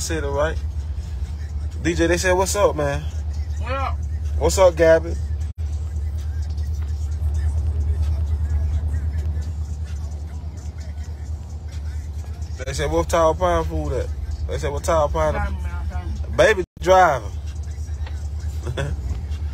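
A car engine hums low and steady inside the car.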